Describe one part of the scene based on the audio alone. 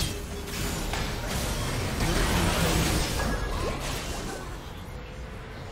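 Video game spell effects burst and crackle in quick succession.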